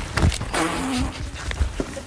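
A young man shouts excitedly.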